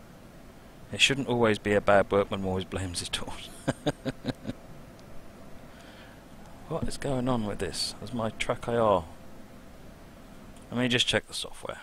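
A middle-aged man talks casually into a microphone, close by.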